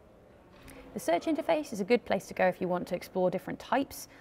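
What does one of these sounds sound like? A woman speaks calmly and close through a microphone.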